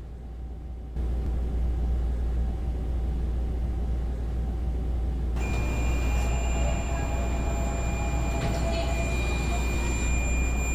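A train hums steadily while standing at a platform.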